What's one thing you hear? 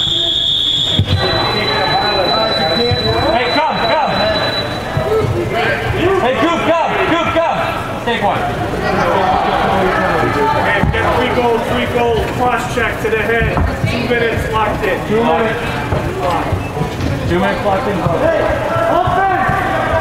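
Young players shout and call out in a large echoing indoor hall.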